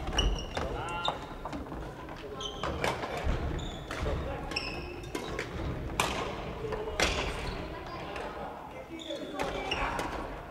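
Shuttlecocks pop off badminton rackets in a large echoing hall.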